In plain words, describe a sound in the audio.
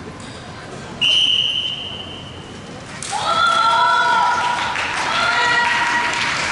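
Young women shout sharp, drawn-out cries in a large echoing hall.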